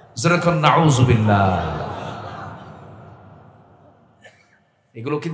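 A man preaches loudly and with passion into a microphone, his voice echoing through loudspeakers.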